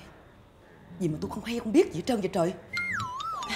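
A middle-aged woman speaks in an upset voice.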